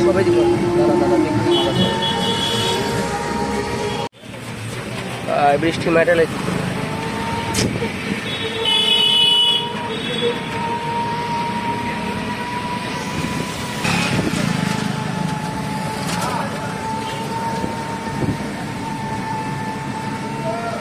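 A pedal rickshaw creaks and rattles as it rolls.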